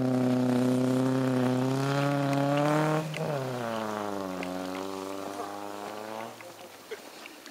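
A car engine roars loudly as the car speeds past nearby and fades into the distance.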